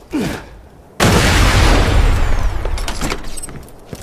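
A rifle fires a loud blast that echoes away.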